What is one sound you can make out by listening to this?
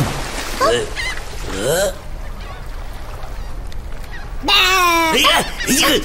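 A high, squeaky cartoon voice exclaims excitedly up close.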